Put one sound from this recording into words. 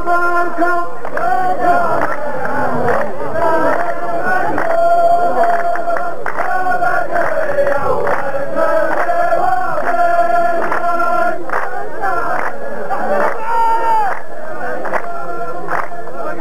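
Men clap their hands in rhythm.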